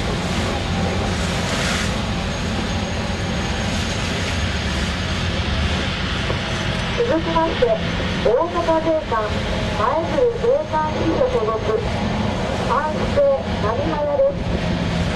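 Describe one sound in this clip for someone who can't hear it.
Wind blows hard across the water.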